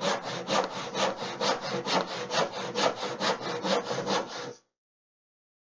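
A hand saw rasps quickly back and forth through wood.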